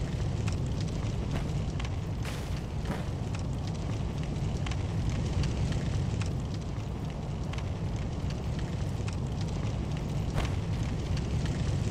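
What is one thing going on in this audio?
Footsteps patter quickly on wooden floorboards.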